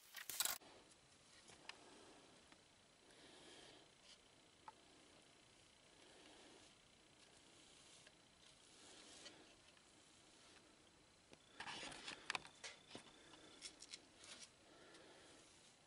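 A hand rubs and brushes across a wooden bowl.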